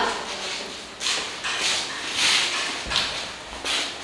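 Children's footsteps shuffle across a hard floor.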